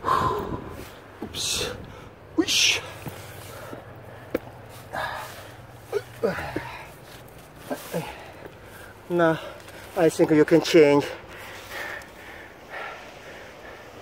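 Boots scrape and thud on bare rock.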